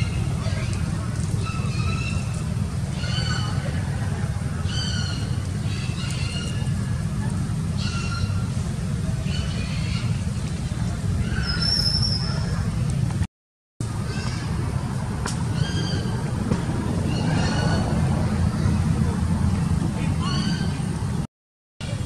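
A baby monkey squeaks and cries in short high calls.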